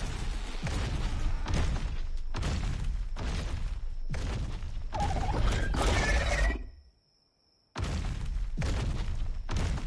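Heavy creature footsteps thud in a steady rhythm.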